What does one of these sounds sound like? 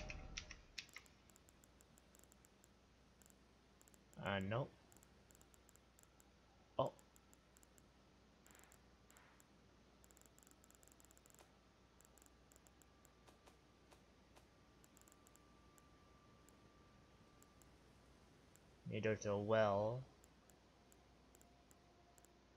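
Soft menu ticks click as a list scrolls.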